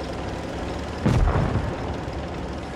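A tank cannon fires with a loud boom.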